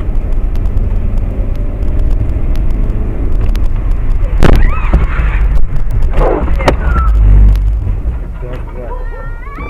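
Raindrops patter on a windshield.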